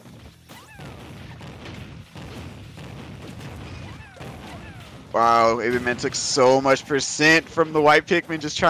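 Game punches and blasts thud and crackle in quick bursts.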